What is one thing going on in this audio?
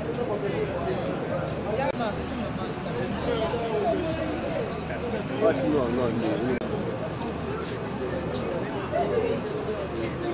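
An elderly woman speaks in a tearful, trembling voice close by.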